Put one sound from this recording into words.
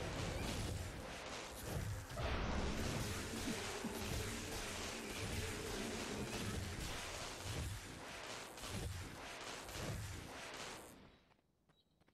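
Blades clash and magic blasts whoosh in a fierce fight.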